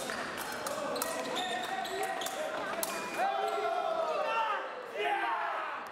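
Épée blades clash and scrape.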